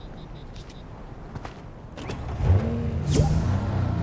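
A heavy thump sounds as something lands on a car.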